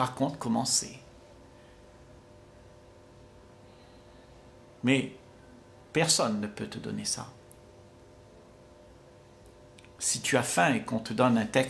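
An elderly man speaks calmly in short phrases with pauses, close to a microphone.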